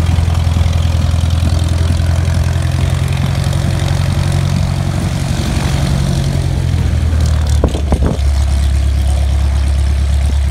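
A small propeller plane's engine idles with a steady, throbbing drone close by.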